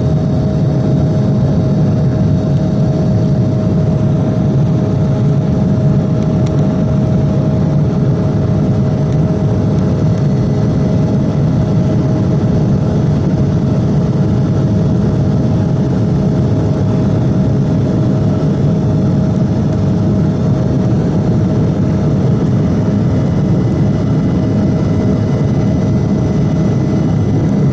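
A steady high whine from a jet engine hums through the roar.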